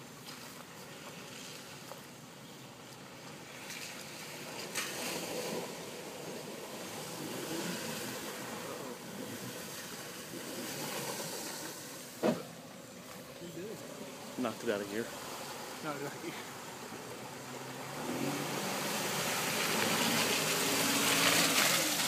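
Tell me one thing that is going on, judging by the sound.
An off-road vehicle's engine rumbles as it drives slowly through water.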